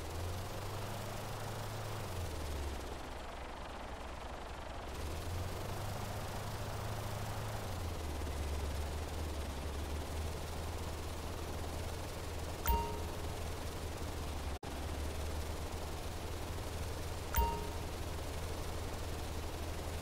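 A blimp's engines drone with a low, steady hum.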